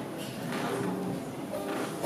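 A ukulele is strummed.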